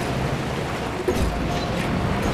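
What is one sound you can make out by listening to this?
A car jolts over railway tracks with a thud.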